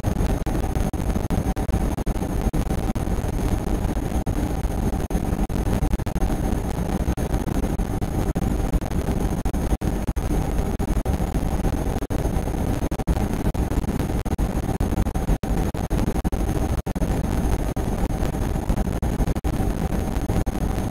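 An electric locomotive rumbles at speed through a tunnel.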